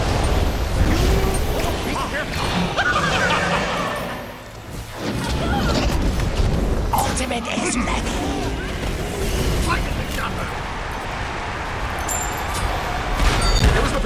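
Magic blasts whoosh and crackle in quick bursts.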